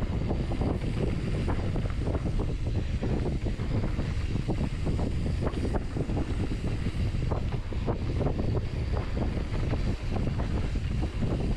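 Bike tyres rumble and crunch over a dirt trail.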